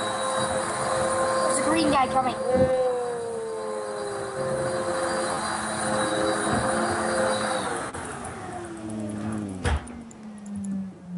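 A boy talks with animation close to a microphone.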